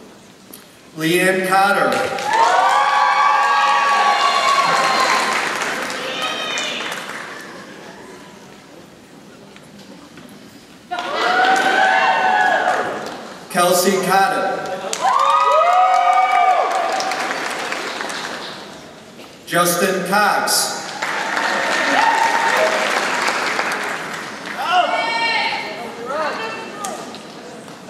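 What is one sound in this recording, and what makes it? A man reads out names over a loudspeaker in a large echoing hall.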